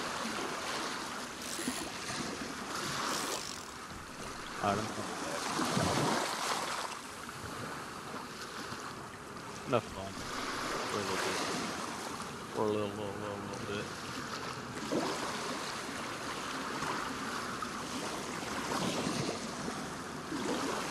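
Water laps and splashes steadily.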